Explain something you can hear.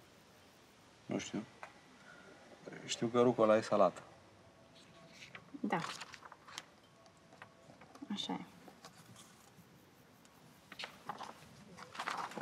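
Menu pages rustle and flip.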